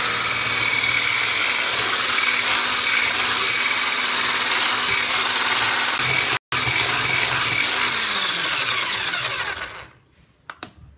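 An electric hand mixer whirs, whisking batter in a bowl.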